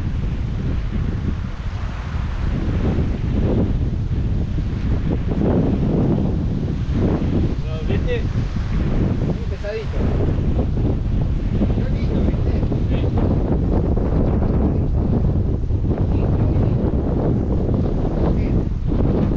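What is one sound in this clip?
Waves wash against rocks nearby.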